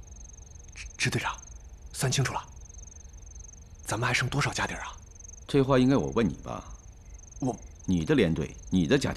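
A young man speaks questioningly.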